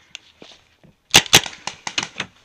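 A paintball marker fires a few quick, sharp pops close by.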